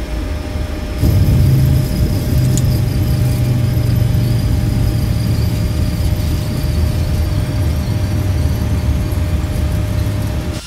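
An airliner's jet engines roar as it rolls down a runway.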